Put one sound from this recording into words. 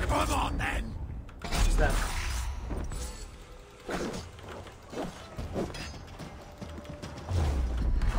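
Blades strike hard with heavy thuds in a fight.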